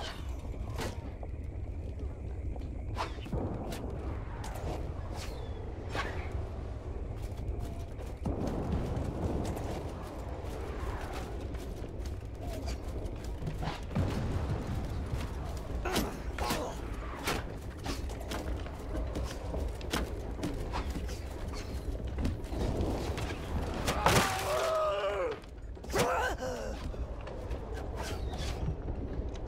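A low battle rumble goes on throughout.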